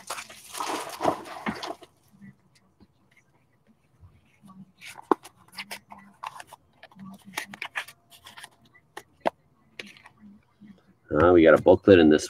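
A cardboard box clicks and knocks as cards are handled.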